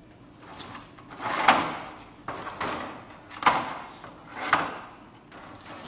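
A metal scraper scrapes across a metal grate in short strokes.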